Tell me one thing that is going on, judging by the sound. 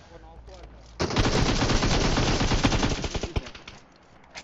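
An automatic rifle fires a rapid burst of gunshots.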